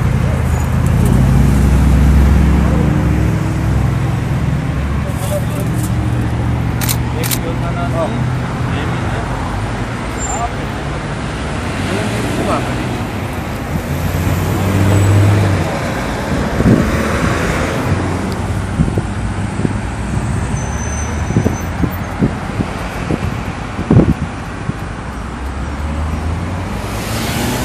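Traffic passes by on a road outdoors.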